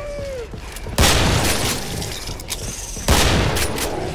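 A shotgun fires with a loud blast that echoes off.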